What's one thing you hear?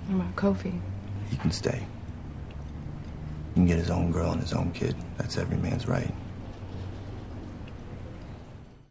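A young woman speaks quietly and intently, close by.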